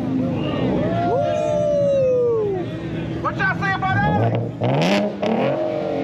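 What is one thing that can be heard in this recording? A car exhaust pops and bangs.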